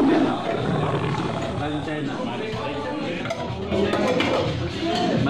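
Several men talk at once in a busy room.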